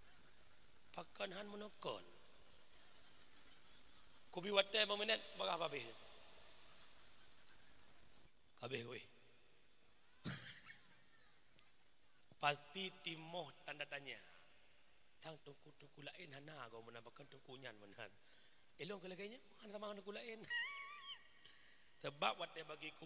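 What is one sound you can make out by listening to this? A man speaks with animation into a microphone, heard through loudspeakers.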